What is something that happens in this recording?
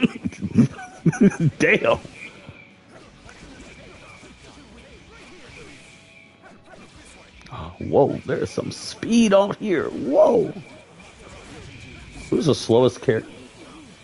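Punches and magic blasts crack and whoosh in a fight.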